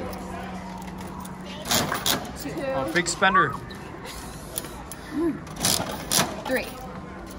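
A coin-operated toy machine's crank clicks and rattles as it turns.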